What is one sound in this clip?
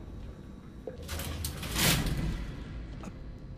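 A metal folding gate slides shut with a rattling clatter.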